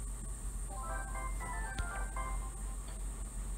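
A bright, chiming game jingle plays a quick run of notes.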